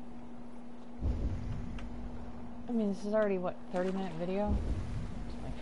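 Water splashes and laps against a wooden boat.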